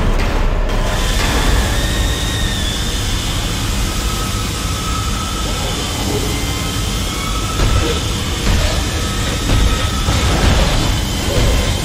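Steam hisses steadily from vents.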